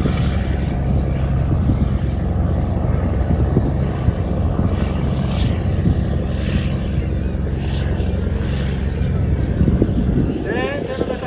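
A boat's engine rumbles steadily nearby.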